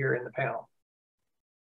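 An older man speaks briefly over an online call.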